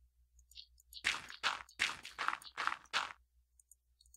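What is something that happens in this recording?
Dirt crunches in quick bursts as blocks are dug out.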